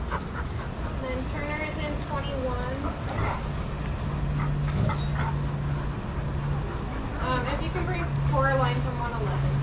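A dog whines and yelps in high bursts.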